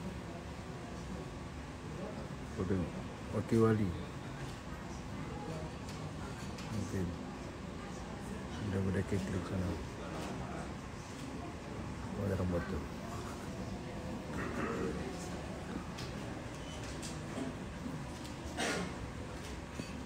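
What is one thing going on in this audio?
A crowd murmurs softly in a large hall.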